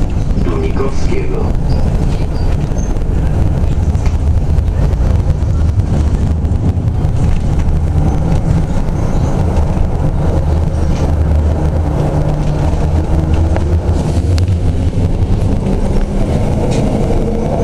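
An electric tram rolls over rails.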